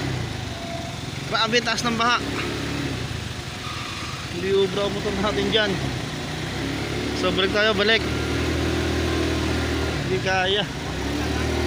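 Tyres splash through water on a flooded road.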